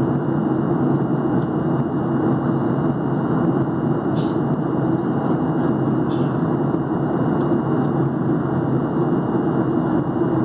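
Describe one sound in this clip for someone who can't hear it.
A jet engine roars steadily, heard from inside a plane's cabin.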